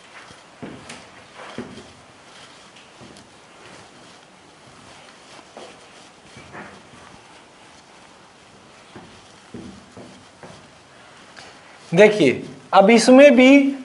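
A board eraser rubs and squeaks across a whiteboard.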